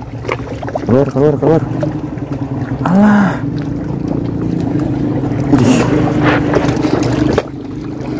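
Water laps gently against a stone ledge.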